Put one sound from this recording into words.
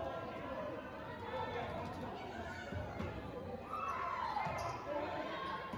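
Players and onlookers chatter and call out in a large echoing gym.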